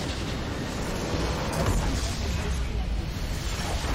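A structure explodes with a deep rumbling blast.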